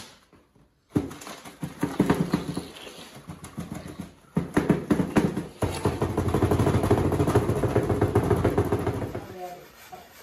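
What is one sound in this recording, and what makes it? A plastic tray of wet concrete rattles as it is shaken hard.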